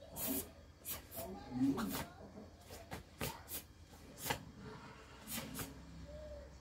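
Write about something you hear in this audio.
Cloth snaps sharply with quick punches and kicks.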